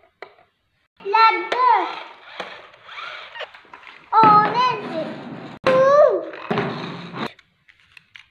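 An electronic toy car plays loud, squeaky sound effects in short bursts.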